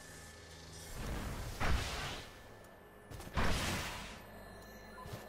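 A heavy gun fires loud, booming blasts.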